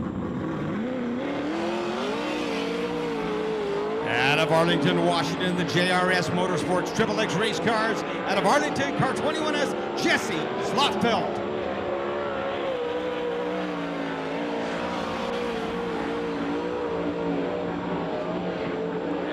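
A race car engine's revs rise and fall.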